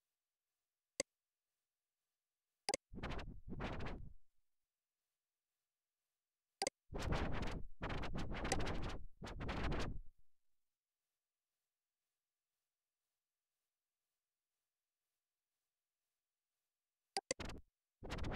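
A mouse button clicks sharply a few times.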